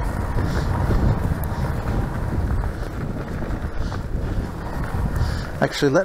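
Bicycle tyres roll and crunch over a leaf-strewn dirt trail.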